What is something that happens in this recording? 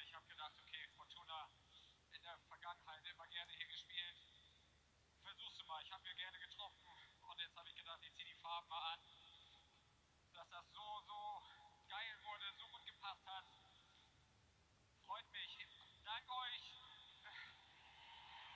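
A young man speaks with emotion into a microphone, close by.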